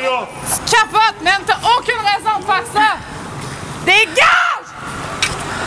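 A man shouts loudly and repeatedly nearby.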